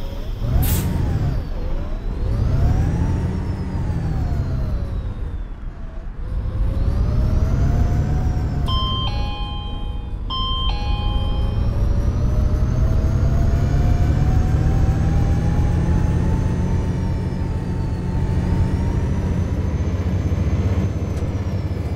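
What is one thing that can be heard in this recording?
A bus engine hums and rises and falls in pitch as the bus speeds up and slows down.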